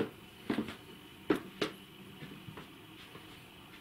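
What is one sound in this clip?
A hand knocks and fumbles close by at a door.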